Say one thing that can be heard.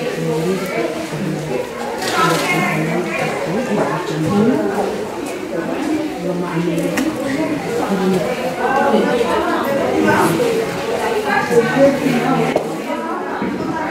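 Several women talk with one another nearby in a calm, chatty way.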